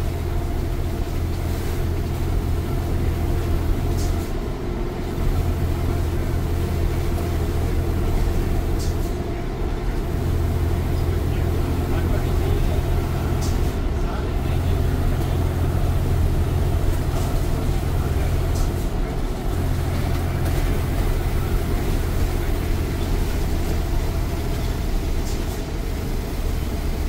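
A bus engine drones loudly and steadily, changing pitch as the gears shift.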